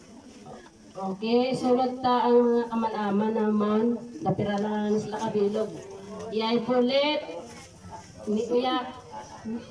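A group of men and women sings together in unison.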